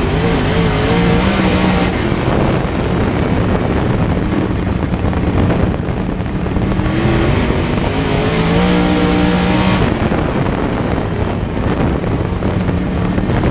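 A race car engine roars loudly from close by, its pitch rising and falling as it speeds up and slows down.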